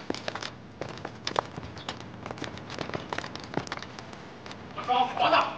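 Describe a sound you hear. Gunshots crack rapidly in a quick volley.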